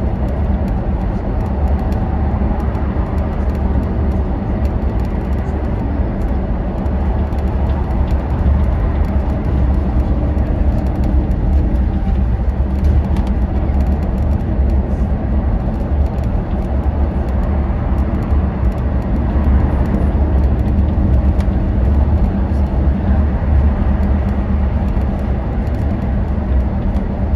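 Traffic roars past on a busy road.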